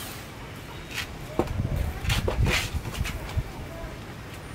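Footsteps scuff on a hard floor nearby.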